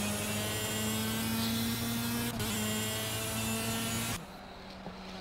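A racing engine whines at high revs.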